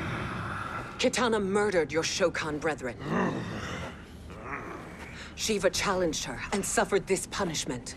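A woman speaks in a commanding, dramatic voice.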